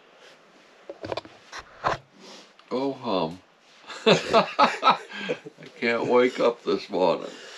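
An elderly man talks casually nearby.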